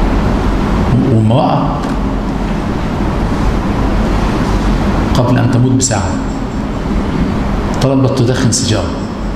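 A middle-aged man speaks calmly into a microphone in a room with some echo.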